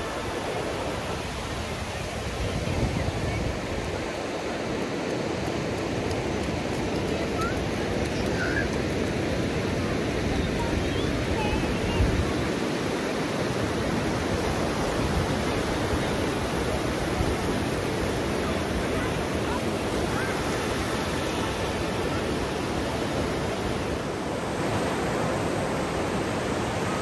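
Waves wash and break on a shore, outdoors in wind.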